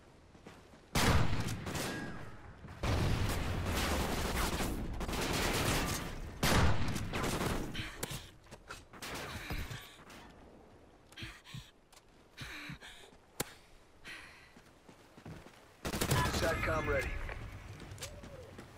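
Loud gunshots crack out and echo.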